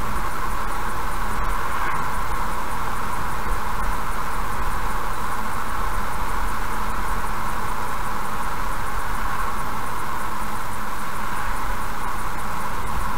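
Tyres hum steadily as a car drives along a road.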